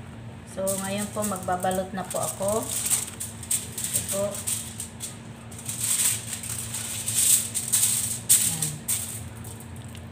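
Aluminium foil crinkles and rustles as hands fold it.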